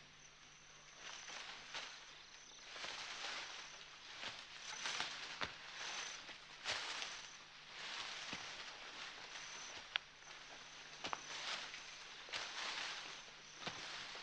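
Tall leafy stalks rustle and swish as a person pushes through them.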